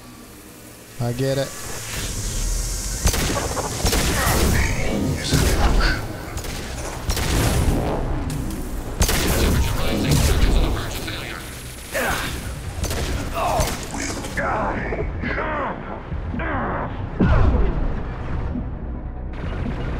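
Gunfire and explosions crackle and boom in rapid bursts.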